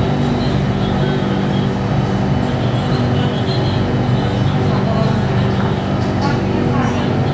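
A subway train rumbles and hums steadily as it travels along the track.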